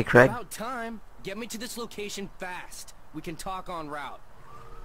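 A man speaks briskly and impatiently nearby.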